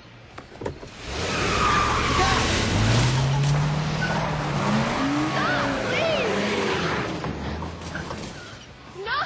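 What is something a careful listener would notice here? A car engine roars loudly as a car speeds up a driveway.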